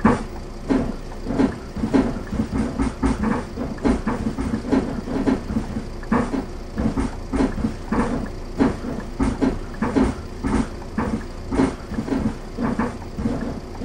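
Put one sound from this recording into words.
A bus engine idles with a low hum.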